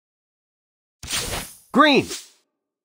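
A short bright jingle sounds from the card game.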